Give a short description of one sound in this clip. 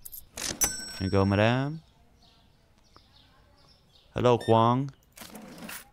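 A cash register chimes.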